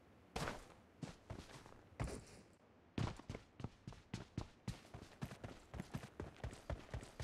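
Quick running footsteps thud in a steady rhythm.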